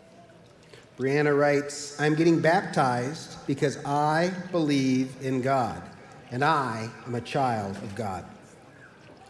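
A middle-aged man reads aloud through a microphone.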